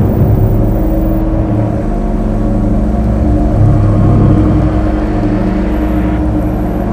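Sand hisses as it sprays out from under the tracks.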